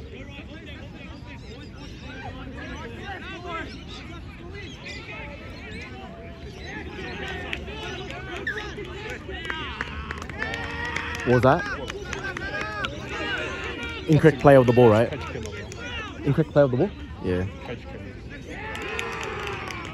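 A crowd of spectators chatters in the distance outdoors.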